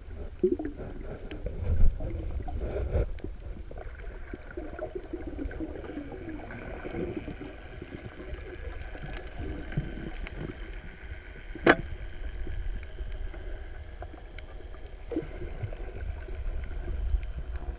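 Underwater, water rumbles and swishes around a moving microphone.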